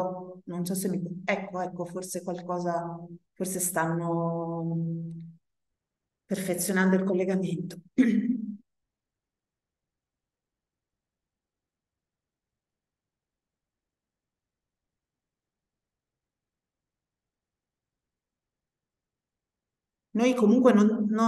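An elderly woman speaks calmly over an online call, with pauses.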